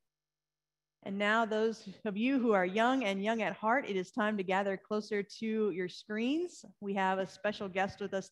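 A woman speaks clearly through a microphone.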